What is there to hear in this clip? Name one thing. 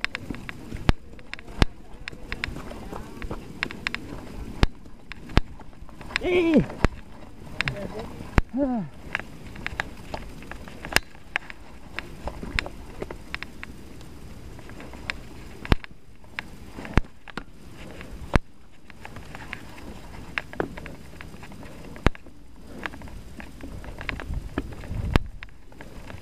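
A bicycle rattles and clicks sharply over bumps.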